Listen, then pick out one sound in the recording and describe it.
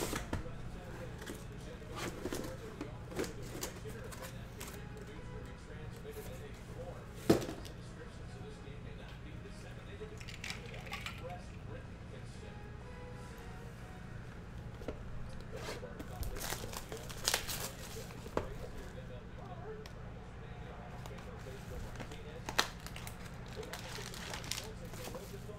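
Cardboard boxes knock and slide on a table.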